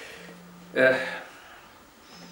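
A man speaks a few words up close.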